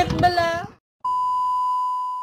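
A steady high test tone sounds.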